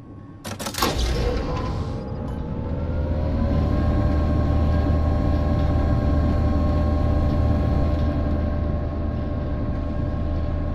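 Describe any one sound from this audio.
A low mechanical drone starts up, rises in pitch, and then hums steadily.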